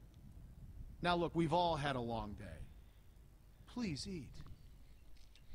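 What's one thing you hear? A man with a deep voice speaks calmly.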